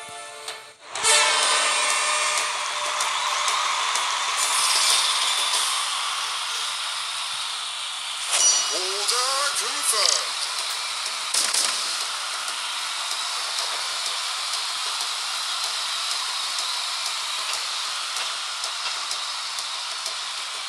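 Upbeat electronic game music plays steadily.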